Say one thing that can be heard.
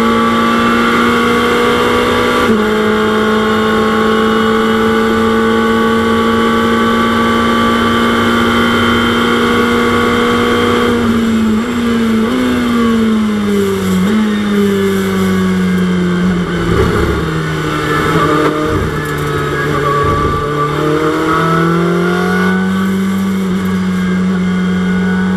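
A racing car engine roars loudly, its pitch dropping and climbing again.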